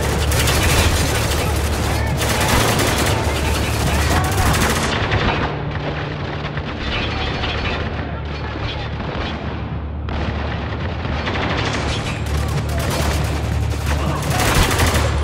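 Gunfire and battle noise rumble steadily throughout.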